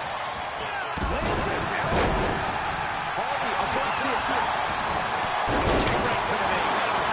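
Bodies slam onto a wrestling ring mat with heavy thuds.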